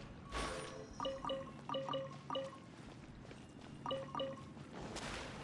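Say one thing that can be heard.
Bright chiming pickup sounds ring out in quick bursts.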